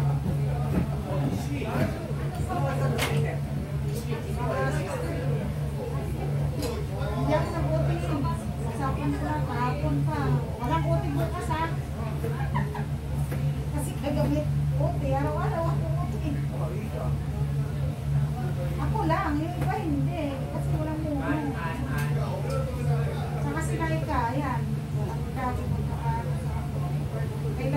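Plastic bags rustle as food is handled.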